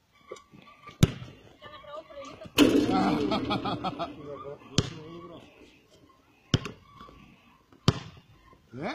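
A basketball bounces sharply on an outdoor court.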